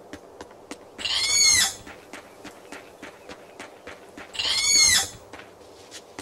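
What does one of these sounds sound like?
A creature lets out shrill, wavering cries.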